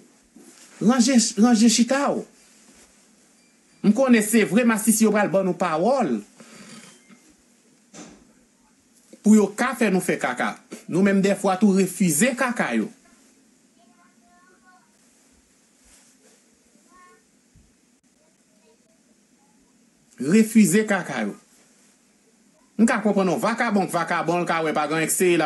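A young man speaks with animation close to a microphone, in bursts with pauses.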